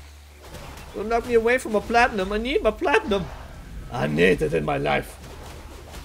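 A young man talks with animation close to a microphone.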